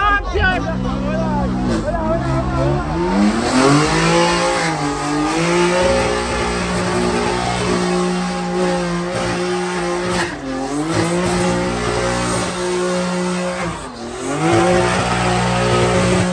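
A car engine revs loudly and roars, rising and falling.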